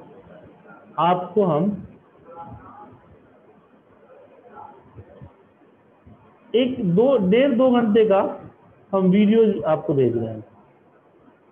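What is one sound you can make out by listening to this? A man speaks calmly and closely into a microphone, in short bursts.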